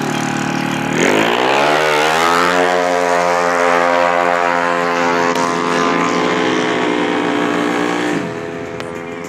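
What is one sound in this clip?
A motorcycle roars off at full throttle, its engine climbing in pitch as it pulls away.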